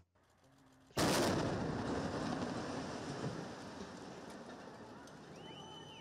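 A building blows up with a loud blast and a long rumble.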